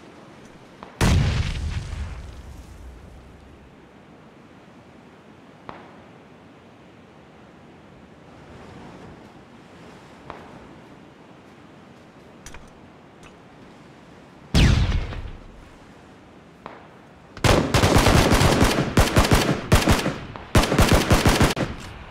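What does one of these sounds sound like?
Gunshots fire in loud rapid bursts.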